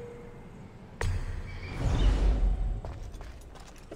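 A heavy thud lands with a deep rumble.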